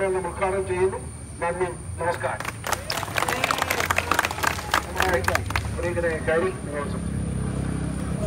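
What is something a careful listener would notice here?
A middle-aged man speaks loudly into a microphone outdoors.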